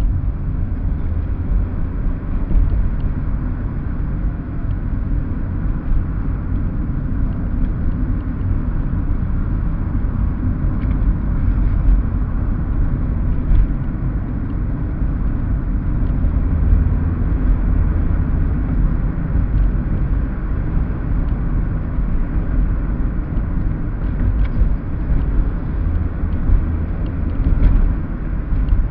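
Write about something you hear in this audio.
Tyres roll over the road with a low rumble.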